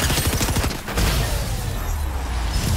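A powerful energy blast bursts with a loud whoosh.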